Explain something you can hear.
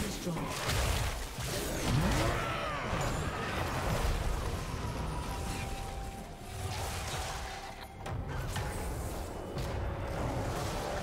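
Game sound effects of spells and attacks crackle and whoosh.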